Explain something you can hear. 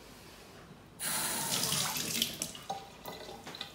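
A tap runs water into a sink.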